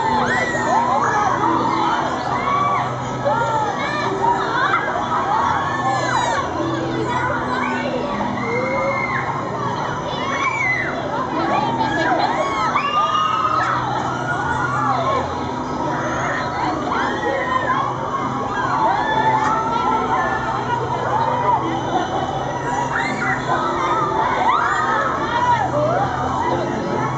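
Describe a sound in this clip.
Children and young people scream and shout with excitement all around, outdoors.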